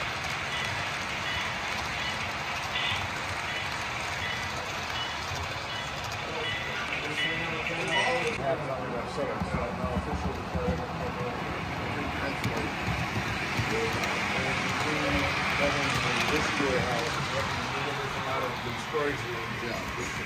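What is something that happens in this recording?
A model train rumbles and clatters steadily along its tracks.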